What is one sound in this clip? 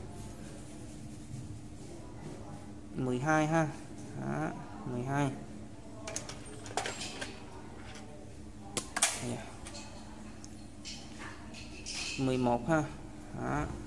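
Metal sockets clink as they are lifted from a case.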